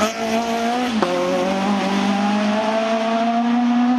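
Gravel crunches and sprays under a car's tyres.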